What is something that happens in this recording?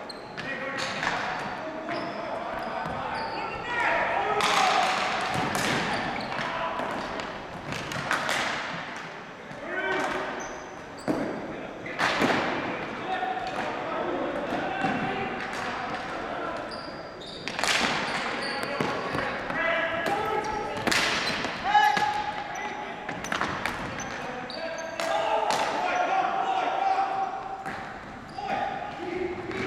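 Players shout to each other across the hall.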